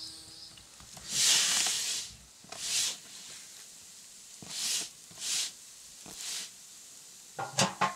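Hands stir and scrape food in a metal wok.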